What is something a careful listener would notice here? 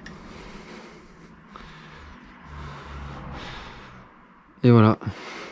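Hard plastic and metal parts rub and knock as they are handled close by.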